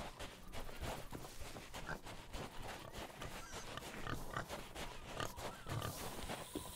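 Footsteps swish and thud steadily through grass.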